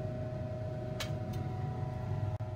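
A glass beaker clinks as it is set down in a ceramic dish.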